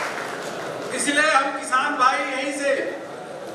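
A man speaks cheerfully into a microphone.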